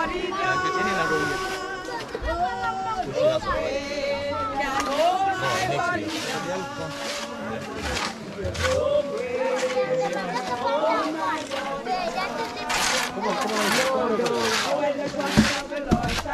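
A crowd of men and women sing together outdoors.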